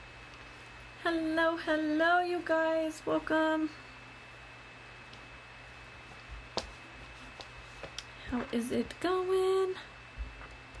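A young woman speaks animatedly, close to the microphone.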